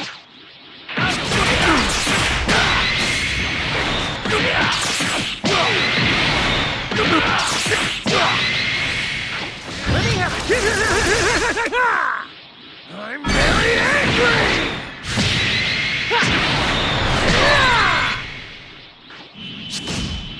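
Energy blasts and punches crash and whoosh in quick bursts.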